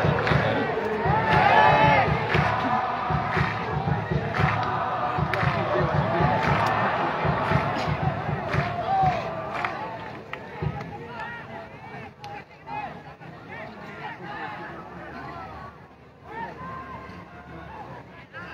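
Young boys chatter close by, outdoors.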